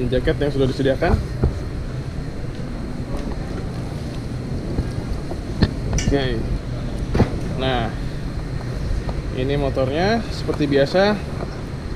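A man speaks close to the microphone in short, animated bursts.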